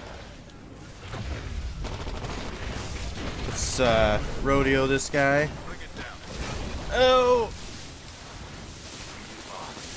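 Gunfire and explosions rumble from a video game.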